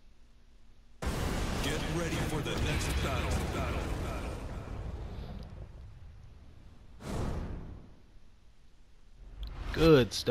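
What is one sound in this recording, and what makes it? Loud, fiery game music plays with whooshes.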